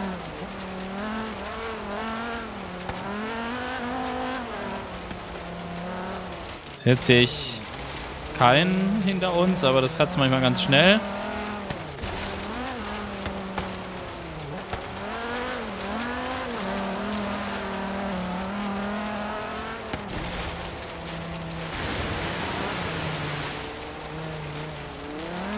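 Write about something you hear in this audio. A car engine revs and roars at high speed, rising and falling in pitch.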